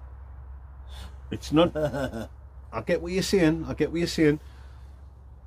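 A second man laughs close by.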